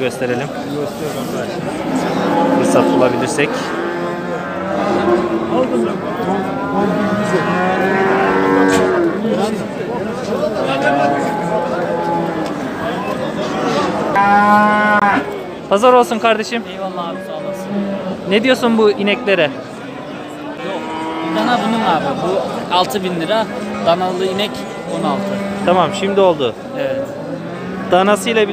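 Many men talk at once in a crowd close by.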